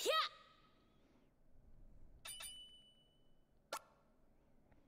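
Short bright electronic chimes ring out.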